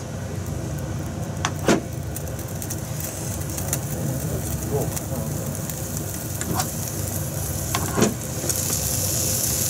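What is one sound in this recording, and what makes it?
A pan scrapes on a stove grate.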